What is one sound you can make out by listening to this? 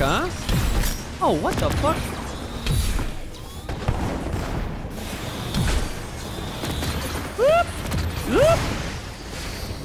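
Energy blasts fire and boom repeatedly.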